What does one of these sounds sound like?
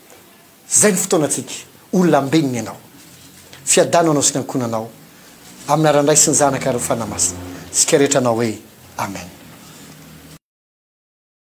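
A middle-aged man preaches with fervour into a microphone.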